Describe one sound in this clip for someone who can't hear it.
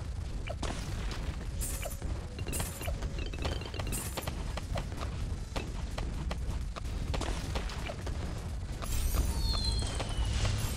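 Cartoon balloons pop in quick, irregular bursts.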